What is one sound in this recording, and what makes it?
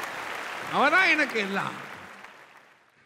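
An audience applauds in a reverberant hall.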